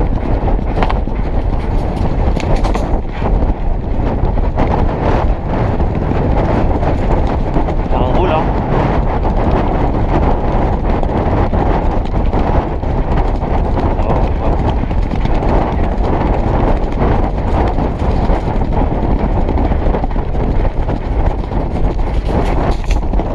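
A horse's hooves pound rapidly on turf.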